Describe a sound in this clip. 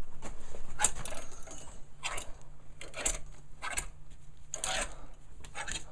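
Clothes rustle as hands rummage through them.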